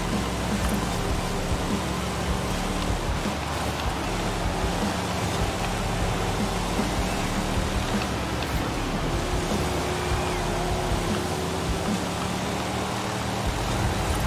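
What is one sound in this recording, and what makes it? Tyres hiss over a wet road.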